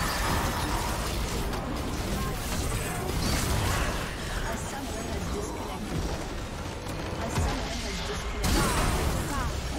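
Magic spells and weapons clash and crackle in a busy fantasy battle.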